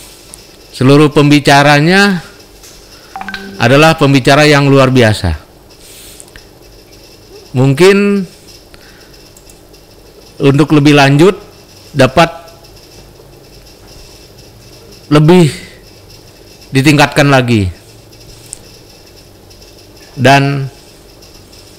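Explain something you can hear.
A middle-aged man speaks calmly in short phrases with pauses, heard through an online call.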